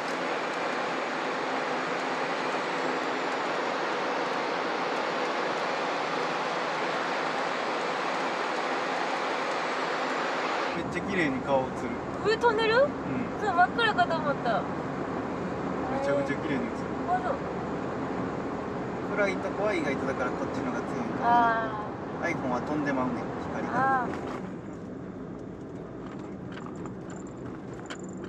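A car hums steadily as it drives along a road, loud at first and then quieter.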